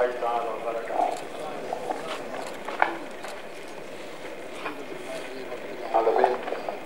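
A man speaks into a microphone over a loudspeaker outdoors.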